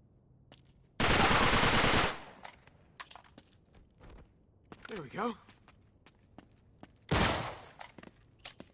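Pistol shots ring out sharply.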